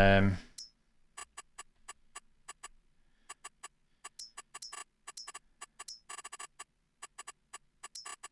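Soft menu clicks tick quickly, one after another.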